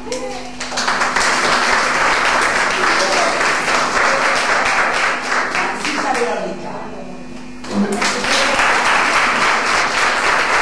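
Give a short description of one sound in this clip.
A group of young people clap their hands in applause.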